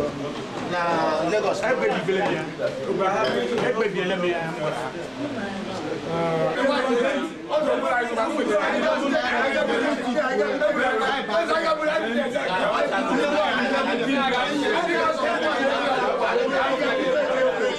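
Several men talk and murmur nearby.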